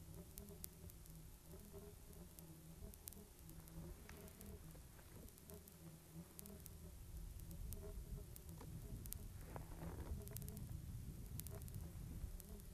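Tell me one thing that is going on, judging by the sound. Wind rumbles across open ground.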